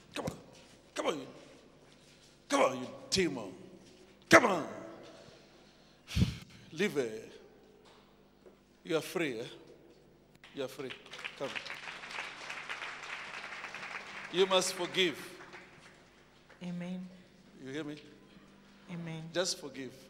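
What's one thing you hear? A man speaks forcefully through a microphone in a large echoing hall.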